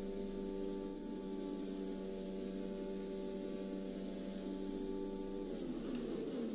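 A Formula One car engine screams at high revs.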